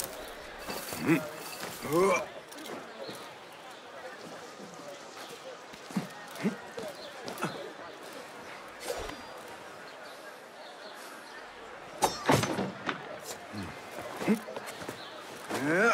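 A man grunts with effort while climbing.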